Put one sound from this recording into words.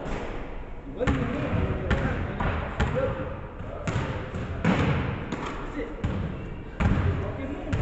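A basketball bounces with sharp thuds that echo through a large hall.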